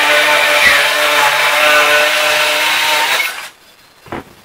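A circular saw whines loudly as it cuts through wood.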